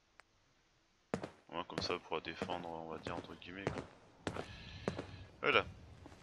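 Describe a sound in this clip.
Footsteps tap on hard stone ground.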